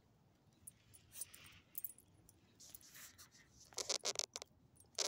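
A small dog sniffs at the ground.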